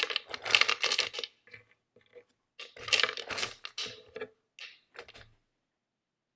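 Dry kibble rattles and clicks as a hand sets pieces into a plastic bowl.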